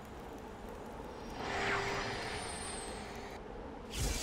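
A magical portal whooshes and shimmers.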